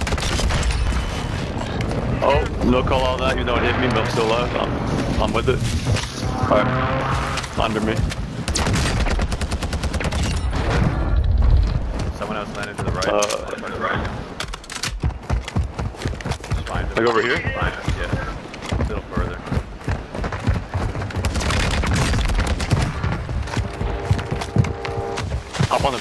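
Rapid gunfire bursts from an automatic rifle.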